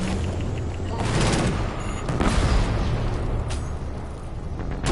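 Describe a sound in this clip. An automatic rifle fires bursts.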